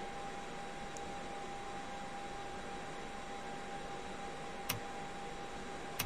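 A steady rush of air and engine noise fills an aircraft cockpit.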